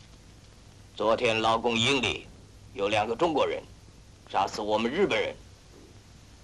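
A man speaks sternly, asking a question.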